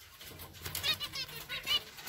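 A bird's wings flutter briefly.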